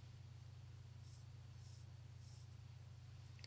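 A brush softly strokes across paper.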